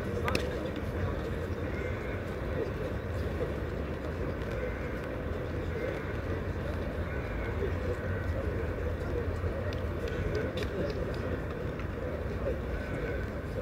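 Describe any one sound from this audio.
Spectators murmur and chat quietly at a distance.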